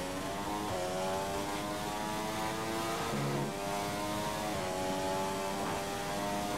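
A racing car engine shifts gears with brief dips in pitch.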